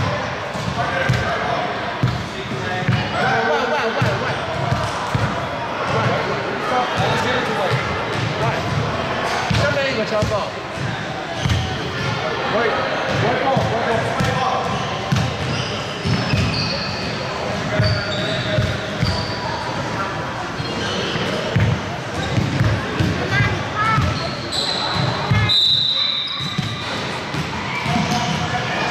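Basketballs bounce on a hardwood floor.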